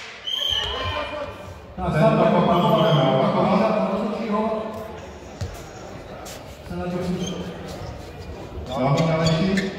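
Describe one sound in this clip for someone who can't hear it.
Sneakers squeak and patter on a hard floor.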